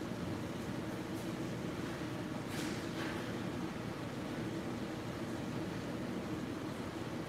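Pressurised water sprays with a steady hiss in a large echoing hall.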